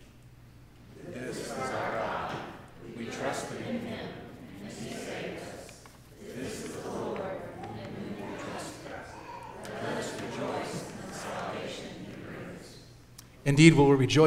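A man reads aloud slowly through a microphone in an echoing hall.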